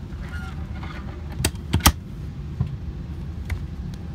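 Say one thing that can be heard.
A hand taps on a hard plastic panel.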